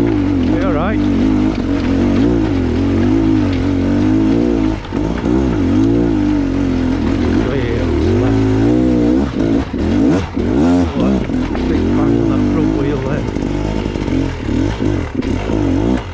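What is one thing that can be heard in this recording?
A motorbike engine revs up and down, close by.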